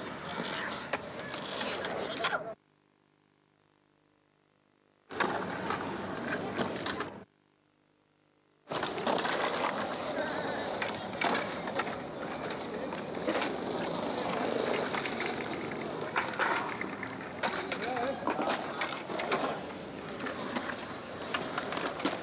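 Skateboard wheels roll and rumble over concrete.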